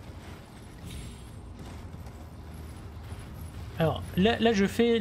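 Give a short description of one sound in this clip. A horse gallops with heavy hoofbeats on soft ground.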